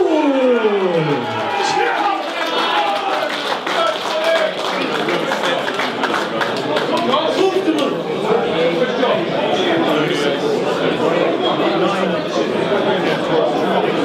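A man speaks into a handheld microphone with animation.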